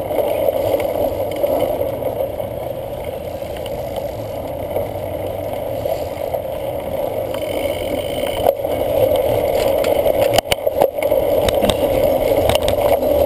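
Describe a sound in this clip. Wind rushes over a microphone on a moving bicycle.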